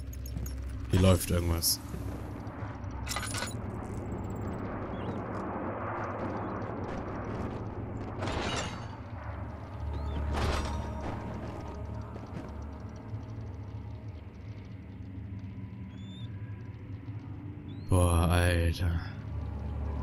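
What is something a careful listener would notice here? A young man speaks briefly into a headset microphone.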